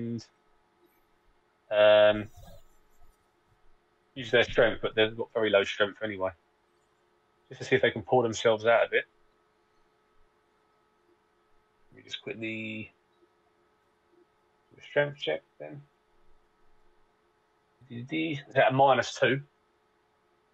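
A man speaks with animation over an online call, in short bursts.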